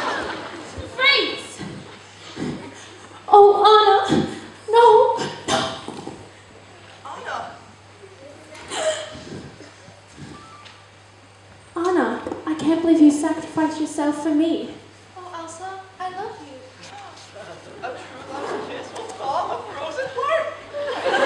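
Young performers speak and call out in a large echoing hall.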